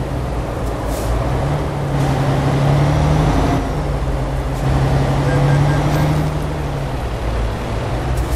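Traffic rumbles past on a busy highway.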